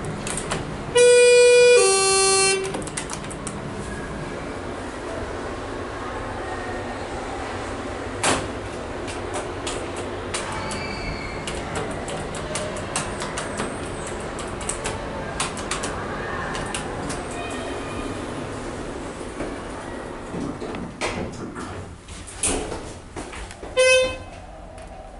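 An elevator chime rings two falling tones.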